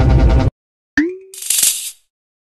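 A short rising chime sounds.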